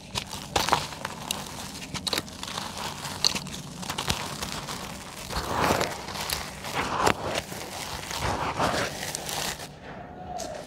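Dry cement lumps crumble by hand into a cement pot.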